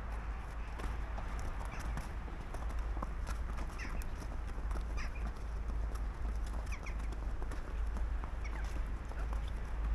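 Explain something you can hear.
A horse's hooves thud softly on sand as it walks.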